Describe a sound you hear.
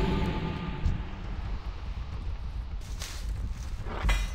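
A magical spell shimmers and crackles with a bright whoosh.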